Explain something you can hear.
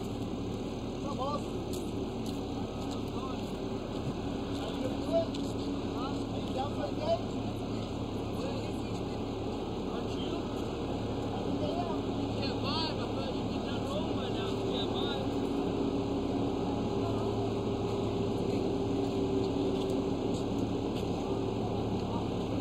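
A road roller's diesel engine rumbles steadily nearby.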